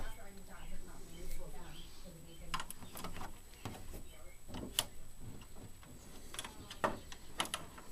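Plastic plugs click and knock against sockets.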